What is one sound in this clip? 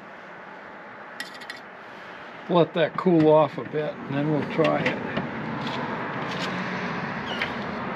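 Tongs clink against a metal rack.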